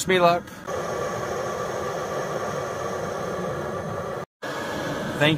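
A gas stove burns with a steady roar.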